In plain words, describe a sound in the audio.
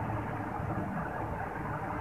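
A propeller plane's engines drone.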